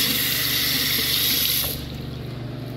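Water runs from a tap and then stops.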